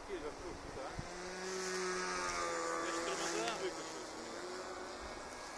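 A small model plane's motor whines overhead, rising and falling in pitch.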